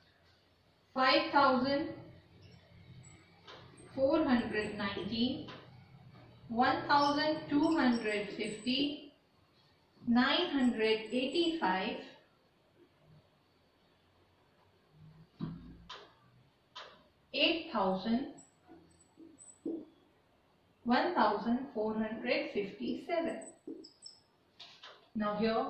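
A woman speaks calmly and clearly, explaining in a small room.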